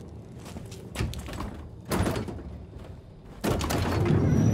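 Heavy double doors are pushed and bang open.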